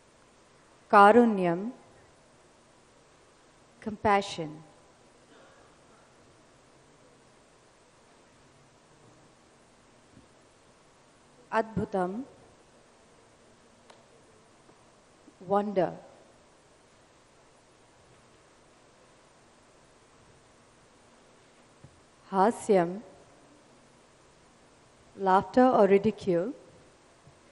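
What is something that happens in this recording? A young woman sings short phrases into a microphone.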